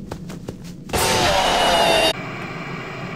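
A creature lets out a loud, piercing screech up close.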